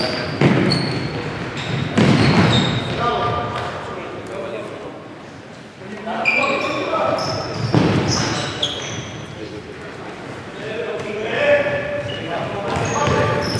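Players' shoes squeak on a wooden floor in a large echoing hall.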